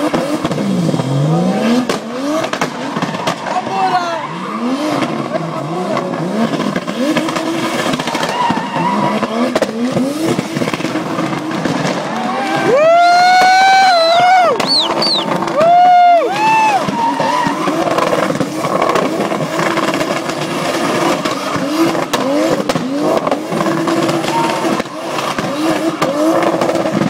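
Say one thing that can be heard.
A car engine revs up and down loudly.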